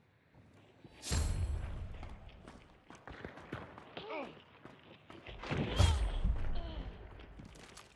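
Footsteps thud on wooden ladder rungs.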